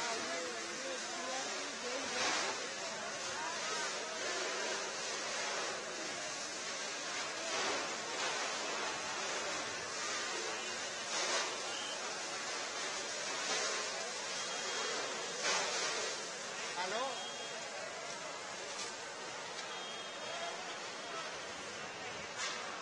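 A large fire roars and crackles steadily.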